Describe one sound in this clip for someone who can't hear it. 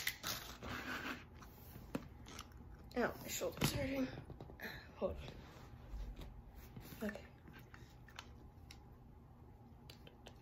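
A plastic ball clicks and taps as hands handle it.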